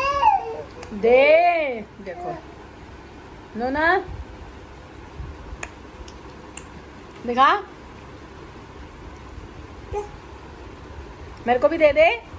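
A young woman speaks close by in a high, playful sing-song voice.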